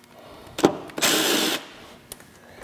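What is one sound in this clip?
A power wrench whirs in a short burst.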